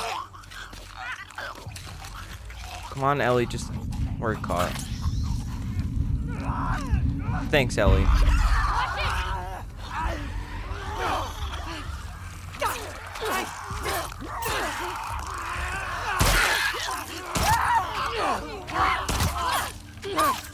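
A creature snarls and shrieks close by.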